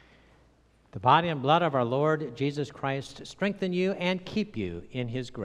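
An elderly man sings a chant loudly through a microphone.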